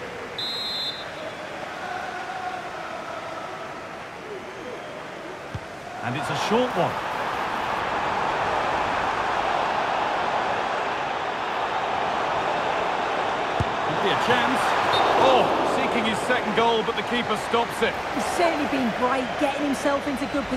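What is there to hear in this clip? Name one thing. A stadium crowd cheers and roars, swelling loudly partway through.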